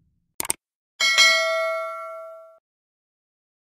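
A small bell rings once and slowly fades.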